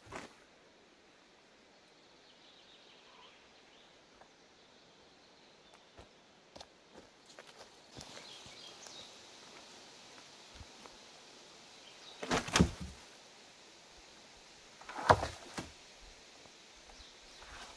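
Footsteps rustle through leaves and undergrowth.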